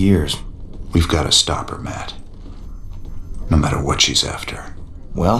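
A man with a deep voice answers calmly.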